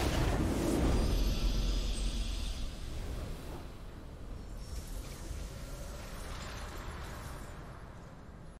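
A triumphant fanfare plays and slowly fades.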